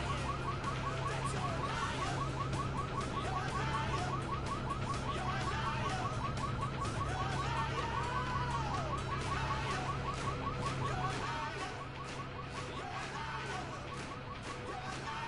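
A sports car engine runs.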